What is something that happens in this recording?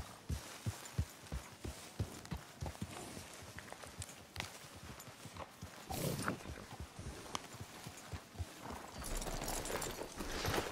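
Horse hooves thud slowly on soft ground.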